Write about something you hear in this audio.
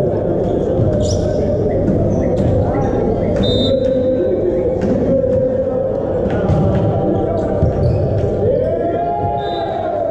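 A volleyball is struck hard in a large echoing hall.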